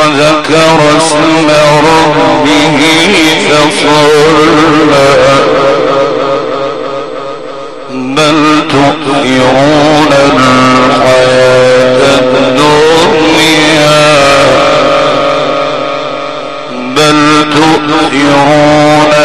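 A man chants in a long, drawn-out melodic voice through a loudspeaker, in a large echoing hall.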